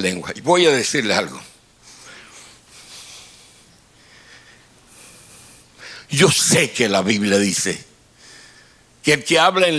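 An elderly man speaks with animation into a microphone, heard through loudspeakers in a large room.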